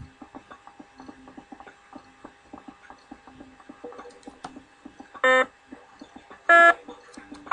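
Small electronic shots pop in quick bursts.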